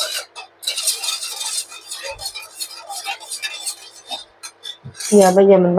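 A spoon scrapes and clinks against a metal bowl while stirring a liquid.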